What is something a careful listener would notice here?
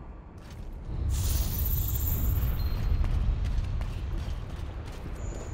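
A burst of magic crackles and sparkles loudly.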